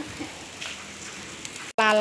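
Food sizzles and crackles over a charcoal fire.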